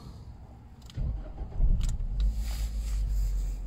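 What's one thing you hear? A car engine starts and idles with a low, steady rumble.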